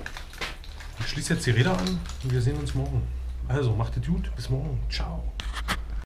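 A man speaks close by in a low, casual voice.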